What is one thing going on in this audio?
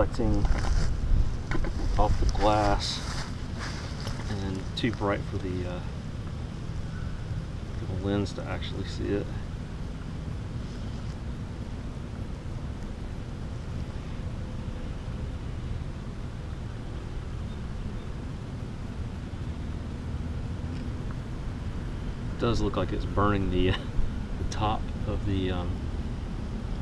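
Tiny bubbles fizz softly in a container of water.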